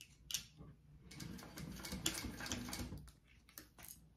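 A sewing machine stitches in short rapid bursts.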